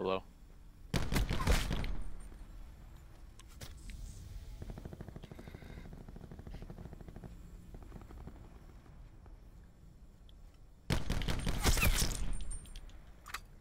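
A sniper rifle fires a single loud shot with a long echoing tail.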